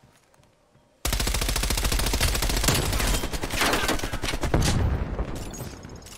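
A rapid burst of automatic gunfire rings out loudly.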